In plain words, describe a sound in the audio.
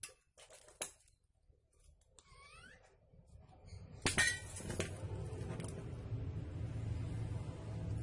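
Metal pliers click as they are gripped.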